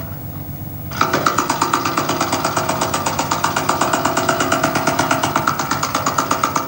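A pneumatic tool hammers rapidly against metal.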